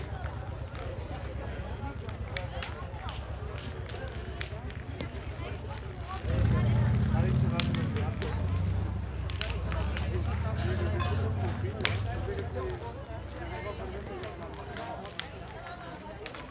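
Boys and men talk quietly at a distance outdoors.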